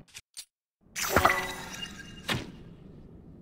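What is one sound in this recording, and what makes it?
A sharp crackling burst of energy sounds.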